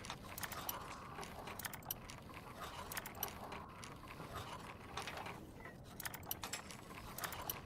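A metal lockpick scrapes and clicks inside a lock.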